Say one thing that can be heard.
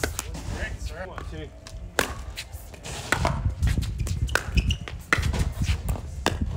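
Paddles hit a plastic ball with sharp pops, back and forth.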